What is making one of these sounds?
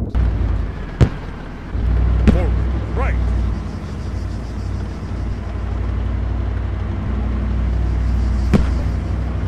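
Heavy gunfire thuds sharply.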